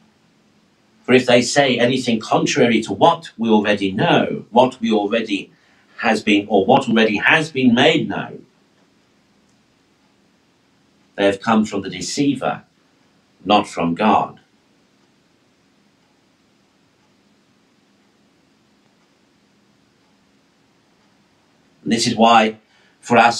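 A man speaks calmly into a nearby microphone, reading out in phrases with pauses.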